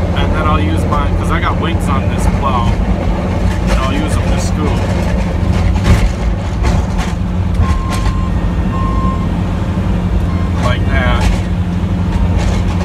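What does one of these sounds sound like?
A truck engine rumbles steadily up close.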